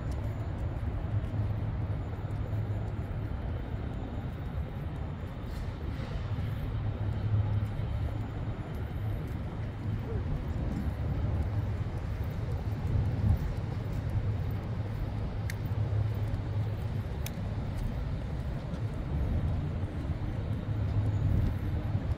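Footsteps tap on paving nearby.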